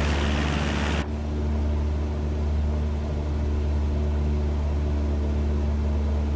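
A propeller engine hums steadily, muffled inside a small cockpit.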